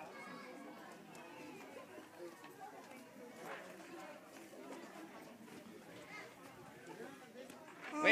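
A crowd of people talk outdoors at a distance.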